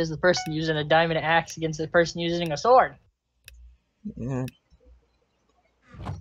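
Short beeps count down in a video game.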